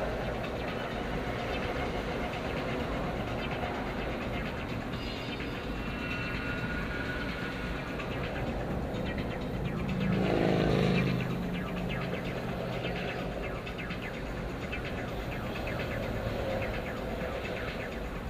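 Traffic noise rumbles from a busy highway outside.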